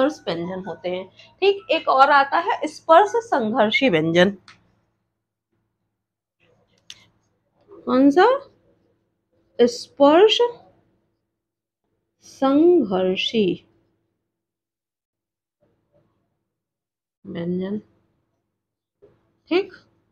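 A woman speaks calmly and clearly, close to a microphone, in short phrases with pauses.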